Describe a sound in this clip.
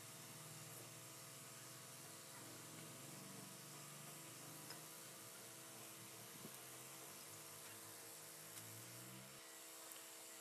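A cloth rubs and wipes against a metal housing.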